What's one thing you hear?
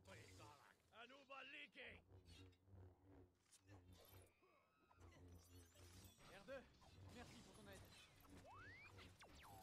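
A lightsaber hums and swooshes as it swings.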